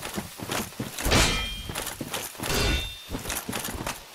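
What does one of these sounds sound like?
A sword swings and whooshes through the air.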